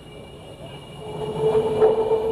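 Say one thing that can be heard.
A jet engine roar swells louder.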